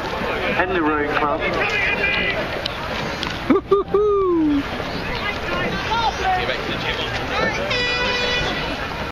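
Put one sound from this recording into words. Water laps gently outdoors.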